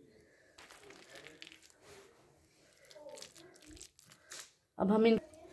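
A hand squishes and mashes soft food in a bowl.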